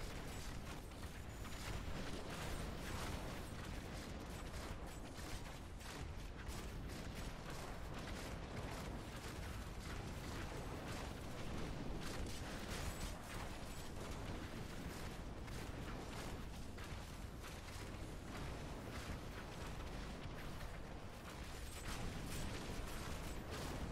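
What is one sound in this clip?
Fiery blasts roar and crackle again and again.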